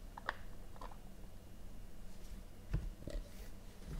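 A box lid slides off with a soft scrape.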